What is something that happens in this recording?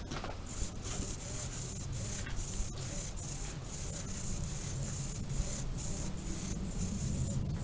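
Small servo motors whir in short, quick bursts.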